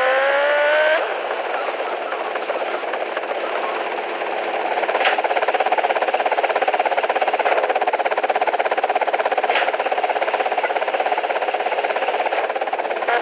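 A motorcycle engine idles with a rapid buzzing rattle.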